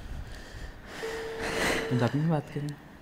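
A young woman laughs softly.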